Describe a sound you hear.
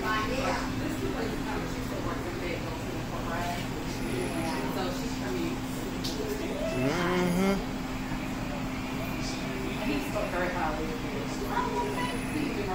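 Men and women chat quietly in the background.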